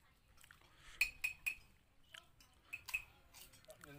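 Cutlery clinks against plates.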